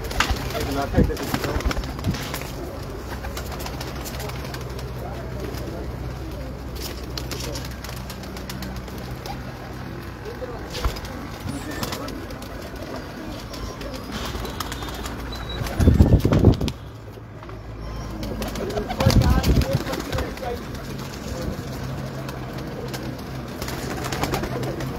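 Pigeons coo softly and steadily nearby.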